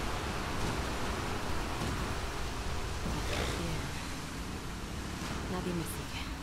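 Water churns and splashes around a moving boat.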